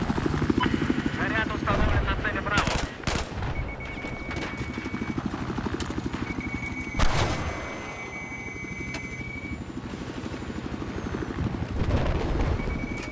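A helicopter's rotor thumps steadily and rapidly.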